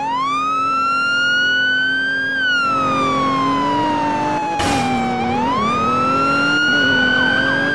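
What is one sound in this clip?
A car engine revs high, drops as the car slows, then revs up again.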